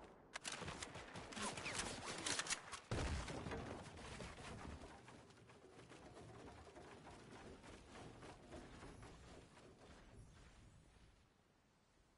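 Wooden panels clatter into place as they are built.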